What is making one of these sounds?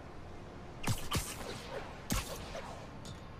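Web lines shoot out with sharp whooshing zips.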